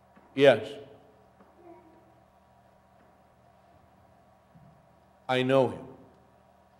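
A middle-aged man speaks in short bursts through a microphone in an echoing hall.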